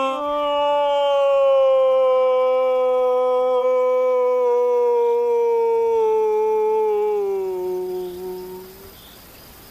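A man blows a long, wavering hooting call through cupped hands that slowly falls in pitch.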